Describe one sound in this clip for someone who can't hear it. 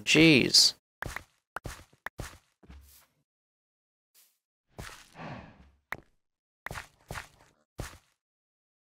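Footsteps thud softly on grass and dirt.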